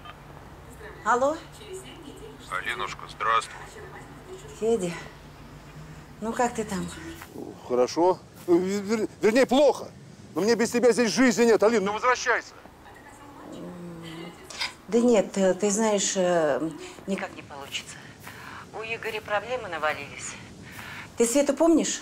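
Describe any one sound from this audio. A middle-aged woman talks calmly on a phone nearby.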